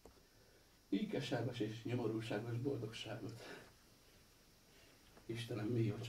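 A middle-aged man speaks quietly in a low voice.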